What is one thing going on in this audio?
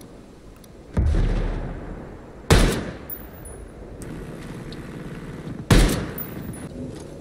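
A sniper rifle fires loud shots that echo away.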